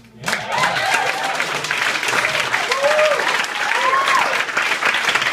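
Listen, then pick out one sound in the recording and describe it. An audience cheers and whoops close by.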